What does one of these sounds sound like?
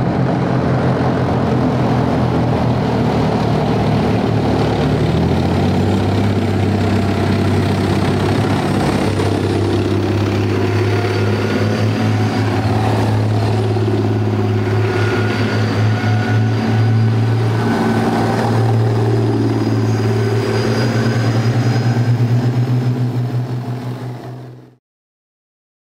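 Heavy tank engines rumble and roar as they pass close by.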